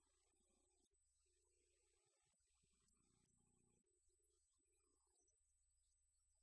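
A small band plays a slow hymn, faint and distant.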